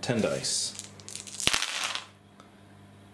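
Dice clatter and tumble across a tabletop.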